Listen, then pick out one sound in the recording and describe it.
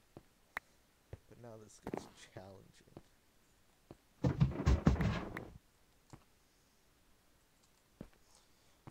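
Short digging knocks sound in quick bursts.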